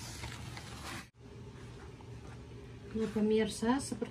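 Hands knead soft dough in a bowl.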